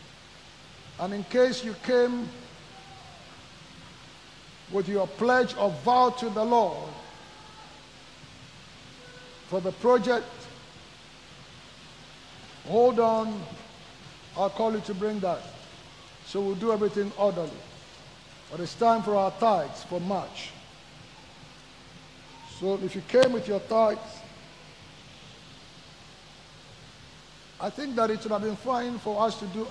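A man speaks through a microphone with animation, in short bursts with pauses.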